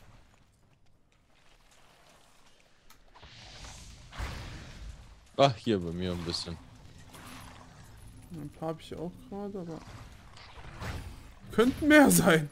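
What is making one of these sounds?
Fiery spells whoosh and crackle in bursts.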